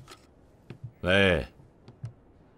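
A middle-aged man speaks briefly into a telephone.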